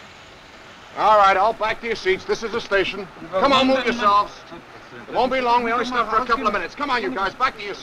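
A man speaks in a strained, breathless voice close by.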